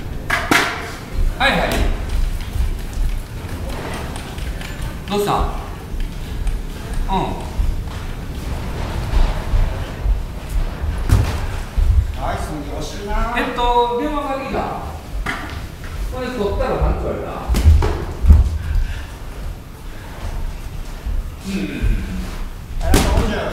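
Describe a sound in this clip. A man calls out instructions loudly in an echoing hall.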